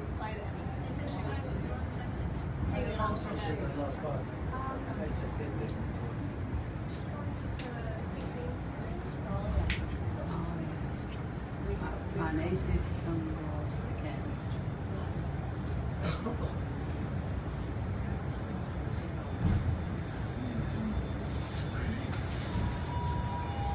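Several adults chat quietly nearby.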